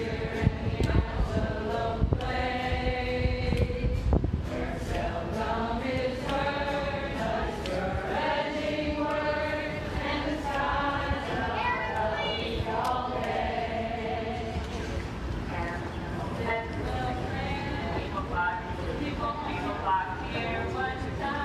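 A crowd of men and women sings together outdoors.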